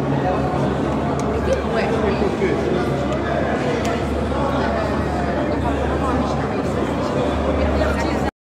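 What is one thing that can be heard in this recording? A crowd of men and women chatters steadily in a large echoing room.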